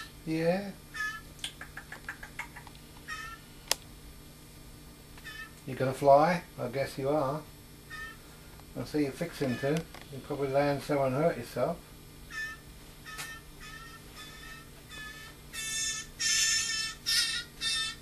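A young bird chirps and cheeps in short high calls.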